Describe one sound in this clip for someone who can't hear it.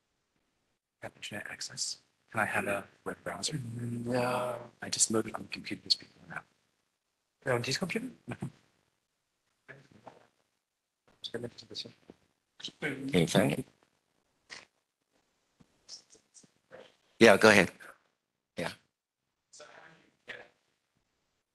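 A man speaks calmly into a microphone in a large room.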